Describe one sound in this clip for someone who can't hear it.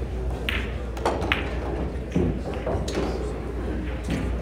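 Pool balls clack together and knock against the cushions.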